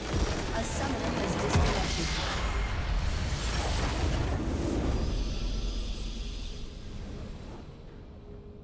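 A video game explosion booms and crackles, then fades away.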